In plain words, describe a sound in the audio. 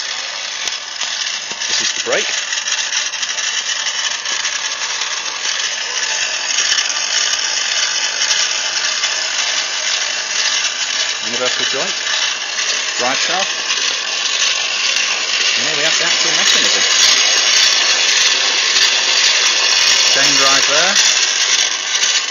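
An electric motor hums steadily as a chain drive turns.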